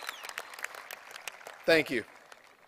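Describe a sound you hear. A crowd claps in a large open stadium.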